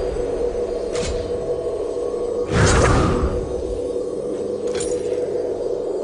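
Menu clicks sound briefly.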